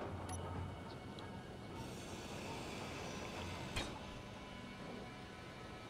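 A power grinder whirs and grinds against metal.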